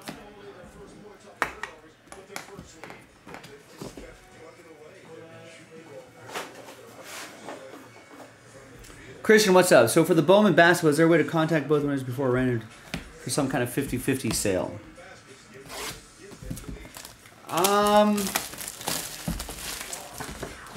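Cardboard packaging rustles and taps as a box is handled.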